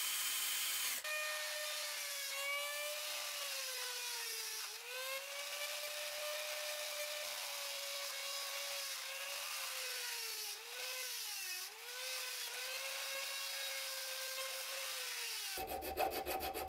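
A small rotary tool whines at a high pitch, dipping briefly as it grinds metal.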